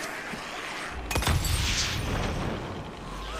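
A firebomb shatters and bursts into flames with a loud whoosh.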